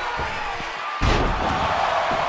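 A heavy body slams down onto a wrestling ring with a loud thud.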